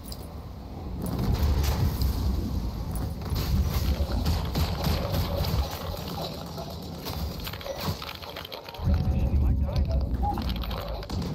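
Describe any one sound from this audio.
A heavy weapon blasts with deep rumbling explosions.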